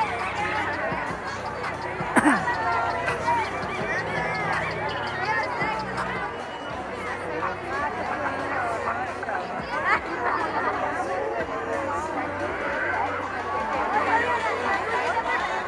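Children squeal and shout with high voices.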